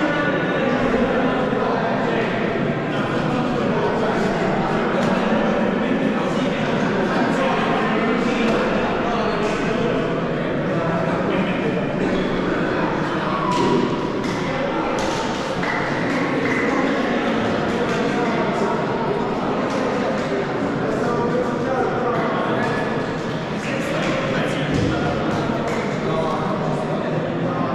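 A crowd of young players chatters and calls out in a large echoing gym.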